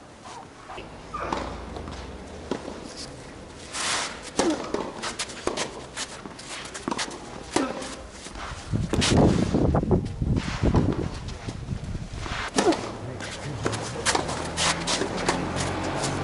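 A tennis ball pops off rackets in a rally outdoors.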